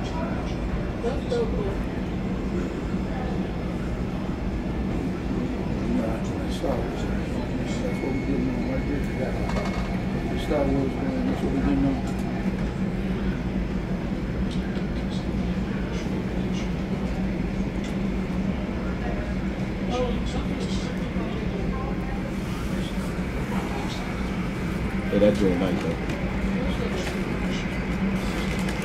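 A jet airliner's engines hum steadily as it taxis close by.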